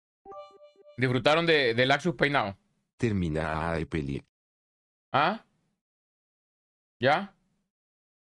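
A young man speaks with animation into a close microphone, in short bursts.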